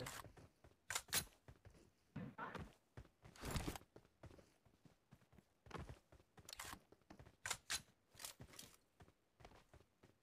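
Footsteps thud quickly on the ground.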